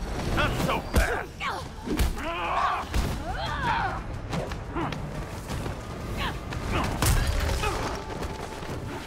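Heavy blows thud and crash during a fight.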